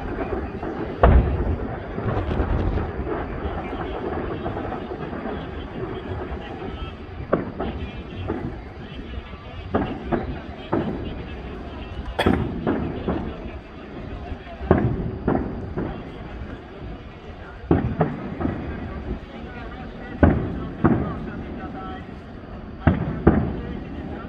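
Fireworks burst with loud booms that echo outdoors.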